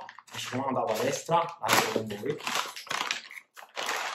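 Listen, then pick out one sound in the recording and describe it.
A plastic bag rustles and crinkles as it is torn open.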